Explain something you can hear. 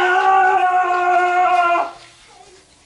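A young child squeals loudly and steadily nearby.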